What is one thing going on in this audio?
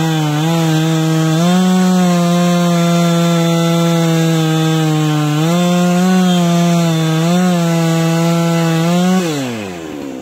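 A chainsaw cuts into a tree trunk at full throttle.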